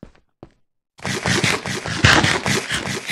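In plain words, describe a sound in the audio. Someone chews food noisily.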